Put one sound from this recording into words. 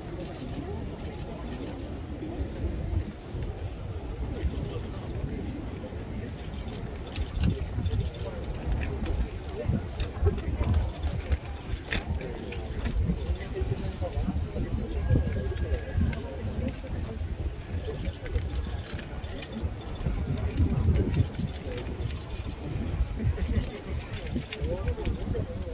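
A large outdoor crowd murmurs and chatters nearby.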